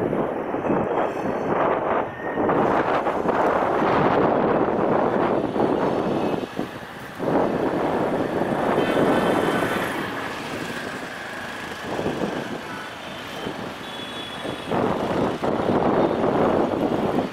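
A diesel locomotive rumbles as it pulls a train slowly along the tracks.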